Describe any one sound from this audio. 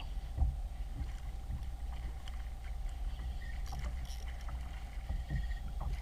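A fishing reel whirs as a man cranks it.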